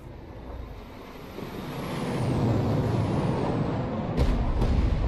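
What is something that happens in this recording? A jet roars past overhead.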